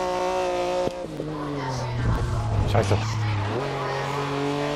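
A prototype race car engine drops pitch as it downshifts under braking.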